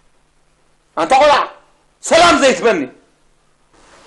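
An older man speaks in a low, serious voice, close by.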